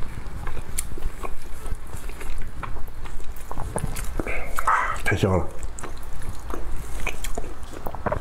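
A man chews wetly close to a microphone.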